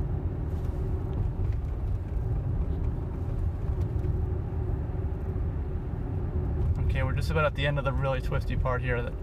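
A car's tyres rumble steadily on the road, heard from inside the car.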